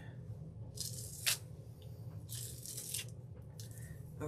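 A sponge dabs and brushes against a plastic stencil.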